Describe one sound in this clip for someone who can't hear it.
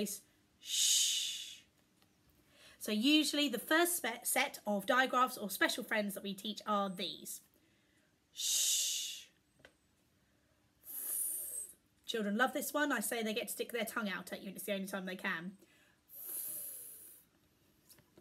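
A woman makes long hissing and breathy speech sounds close to a microphone.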